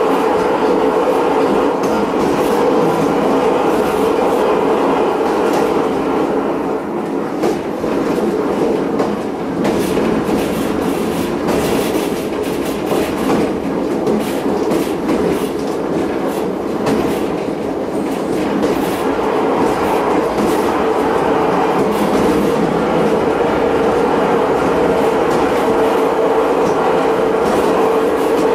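Wheels click and clatter over rail joints.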